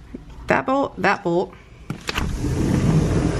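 A sliding door rolls open with a click.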